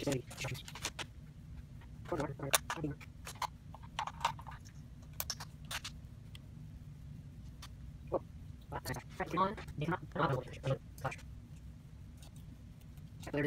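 Plastic parts click and rattle as they are handled close by.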